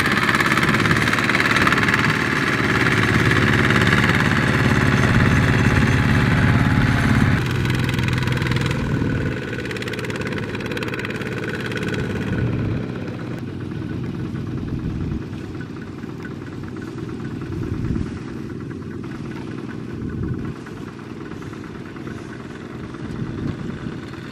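A small diesel engine chugs loudly and steadily close by.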